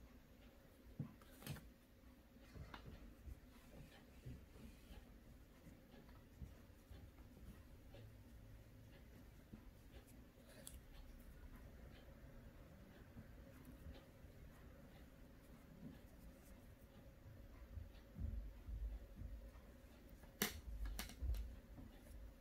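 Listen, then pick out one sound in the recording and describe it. Plastic wire taps and clicks now and then.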